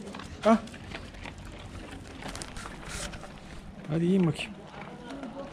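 Dogs crunch dry food off the ground.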